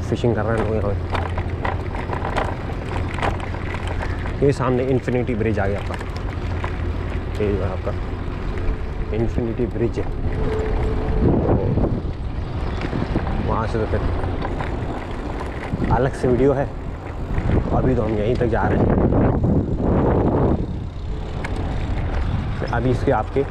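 Tyres roll over a paved path.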